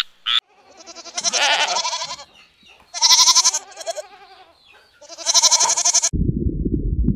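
Goats bleat.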